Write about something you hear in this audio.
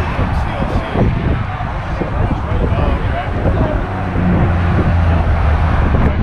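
Traffic passes by on a nearby road.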